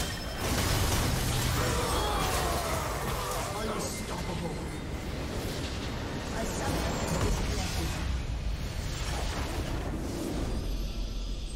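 Spells and blasts crash loudly in a video game battle.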